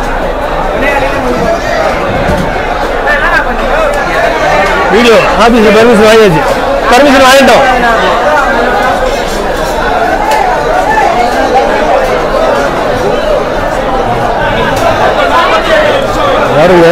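A crowd of men and women chatter loudly all around in a busy, echoing space.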